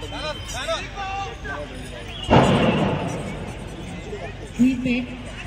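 A crowd of adults chatters and calls out at a distance outdoors.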